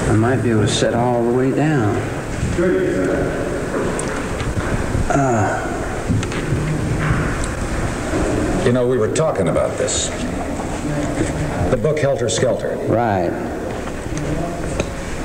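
A man speaks animatedly into a nearby microphone.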